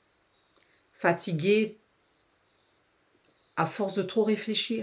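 A woman speaks close to a microphone, with animation.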